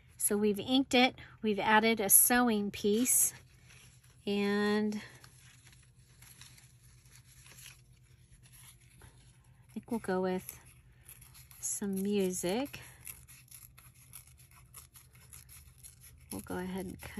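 Paper rustles and crinkles softly as it is handled.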